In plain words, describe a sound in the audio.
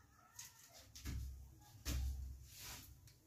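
A wooden door thumps and rattles.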